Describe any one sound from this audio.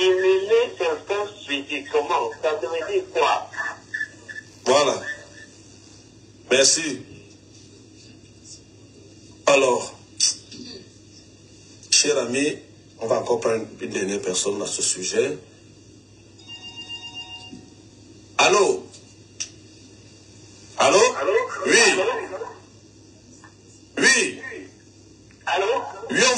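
A man speaks calmly and close up, with pauses.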